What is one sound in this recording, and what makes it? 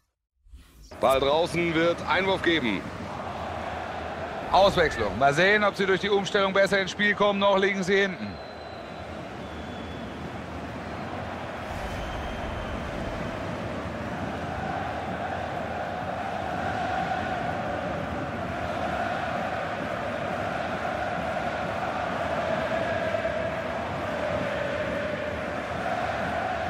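A large crowd cheers and chants steadily in a stadium.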